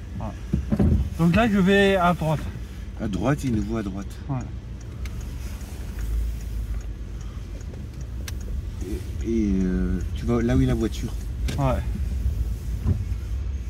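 A car engine hums low and steady while driving slowly.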